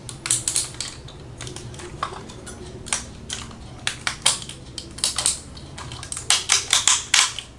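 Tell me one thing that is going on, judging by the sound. Plastic toy parts click and rattle as they are twisted into place.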